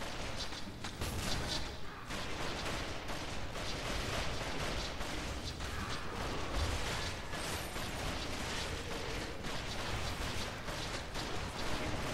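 Game spell effects and weapon hits crackle and clash rapidly.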